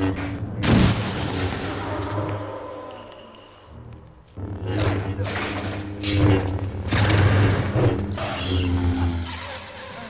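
A young man groans in pain.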